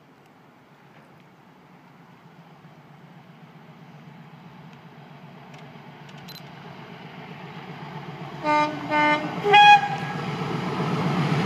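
A train approaches along the tracks with a growing rumble.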